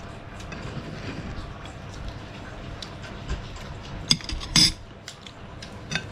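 Metal spoons clink and scrape against plates and a bowl.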